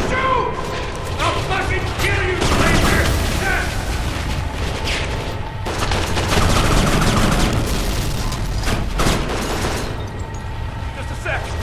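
A rifle fires in quick bursts of loud shots.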